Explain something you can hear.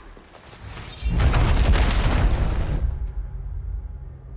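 A wall of ice shatters with a loud, rumbling crash.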